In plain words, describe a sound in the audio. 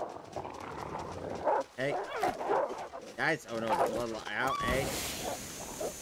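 A wolf snarls and growls.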